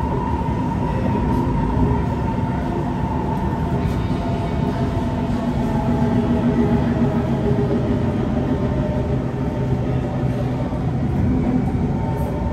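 A train rumbles and hums steadily as it rolls along.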